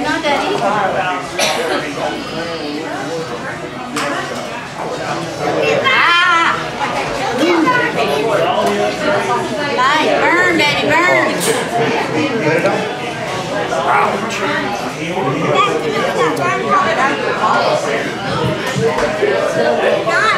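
Men and women chatter and laugh nearby in a busy room.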